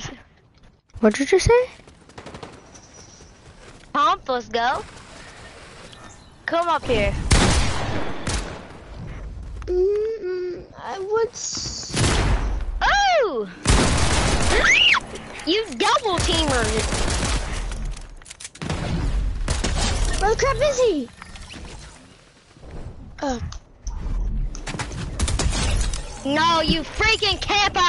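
A young boy talks excitedly into a microphone.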